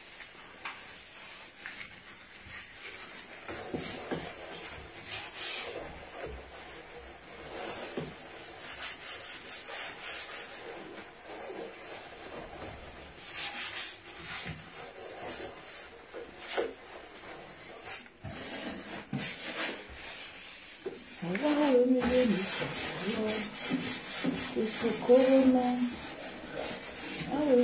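A gloved hand scrubs and wipes a surface with rubbing, squeaking strokes.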